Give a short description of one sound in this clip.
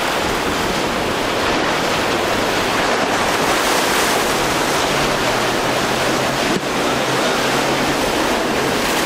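A motorboat engine roars at speed.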